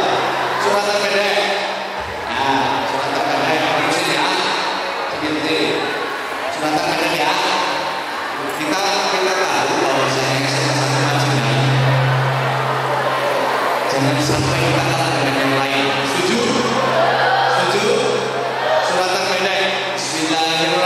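A man speaks with animation through a microphone and loudspeakers in a large hall.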